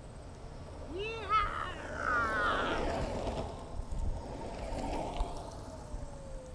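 An electric scooter whirs past on a street.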